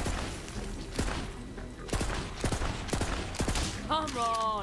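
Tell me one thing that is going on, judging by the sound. A gun fires a quick burst of loud shots.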